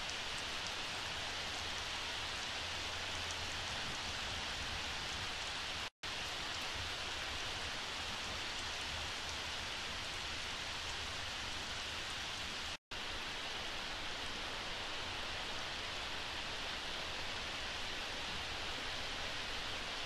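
Steady rain pours down outdoors.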